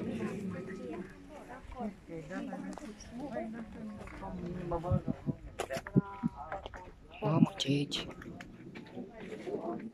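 A crowd murmurs and chatters nearby.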